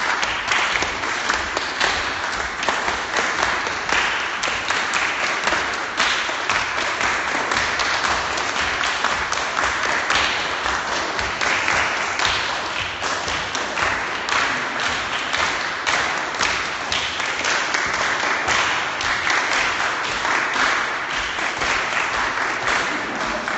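A crowd of men and women sings and chants loudly in an echoing hall.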